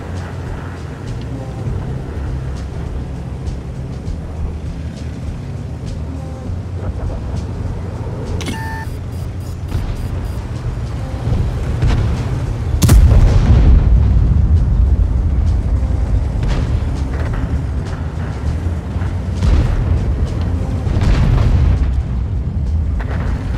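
A heavy tank engine rumbles low and steadily.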